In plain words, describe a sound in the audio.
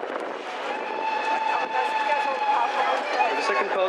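A steam locomotive blows a long whistle.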